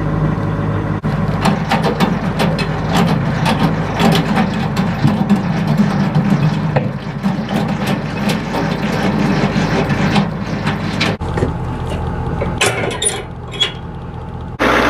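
A metal trailer jack clanks and knocks against a hitch ball.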